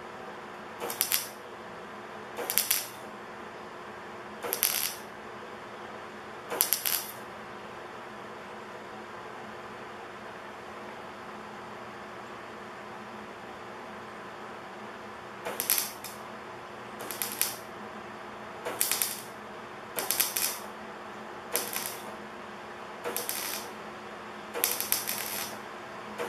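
A welder crackles and buzzes in short bursts.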